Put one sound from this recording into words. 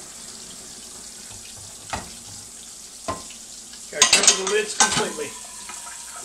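Water pours and splashes into a large pot of water.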